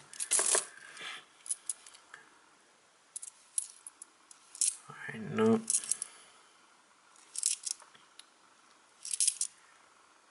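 Metal coins clink together in a hand.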